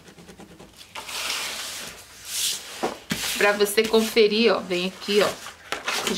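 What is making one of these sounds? Stiff paper slides and rustles across a table.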